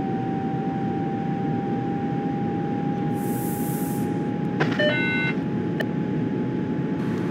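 An electric train motor whines at a steady pitch.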